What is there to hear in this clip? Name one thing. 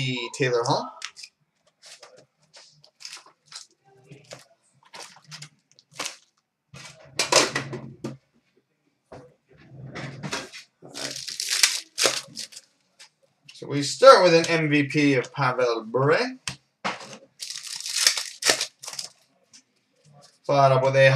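Card packs and boxes tap and rustle as hands handle them.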